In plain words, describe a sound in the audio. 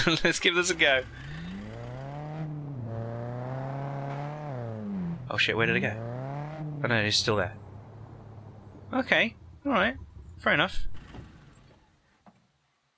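A car engine revs and hums, rising and falling in pitch.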